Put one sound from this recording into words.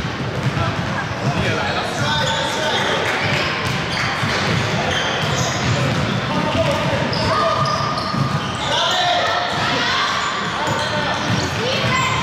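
Children shout and call out excitedly.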